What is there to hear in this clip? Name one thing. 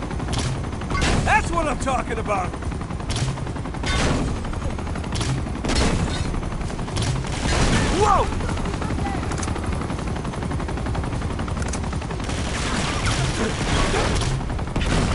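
Explosions boom several times.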